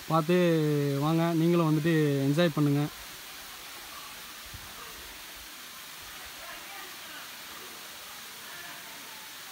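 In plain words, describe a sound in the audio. A small waterfall trickles down a rock face in the distance.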